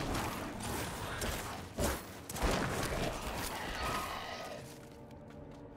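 Game combat sounds clash and thud in quick bursts.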